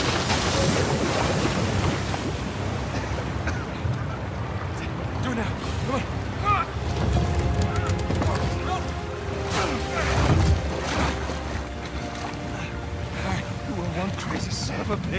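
Water rushes and churns loudly.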